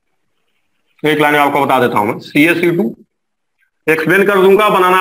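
A man speaks calmly and clearly nearby, in short phrases.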